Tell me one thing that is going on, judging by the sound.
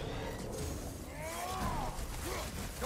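A fiery blast roars and crackles.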